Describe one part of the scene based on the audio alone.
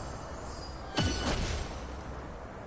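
A sudden magical burst crackles and booms.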